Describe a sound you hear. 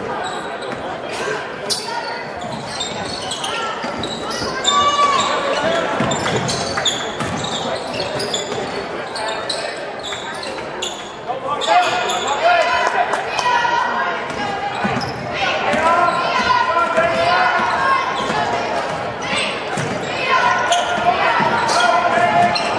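A crowd of spectators chatters and shouts.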